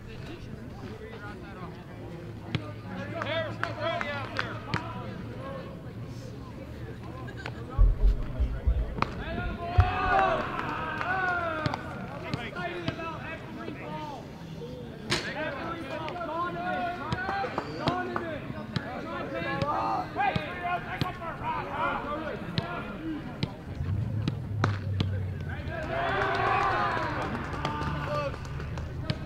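Young men chatter and call out outdoors nearby.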